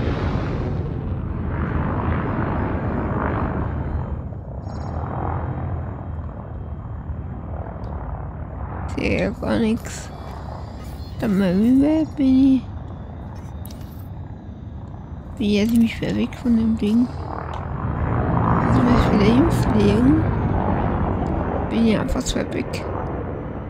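A spaceship engine hums low and steadily.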